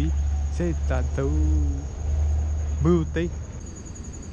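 A young man talks close by in the open air.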